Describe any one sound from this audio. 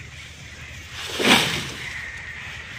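Dry leafy stalks rustle as they are pushed onto a cart.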